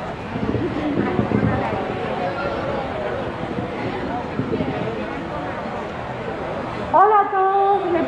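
A crowd of men and women talk at once outdoors.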